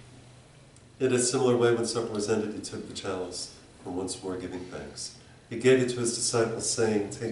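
An elderly man speaks calmly and clearly.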